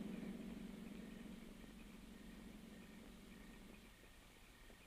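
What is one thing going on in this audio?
A car engine rumbles nearby and fades as the car pulls away.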